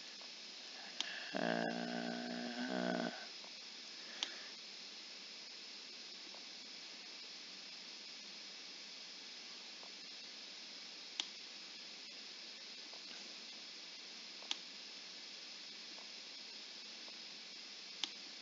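Short clicks of chess pieces being placed sound now and then.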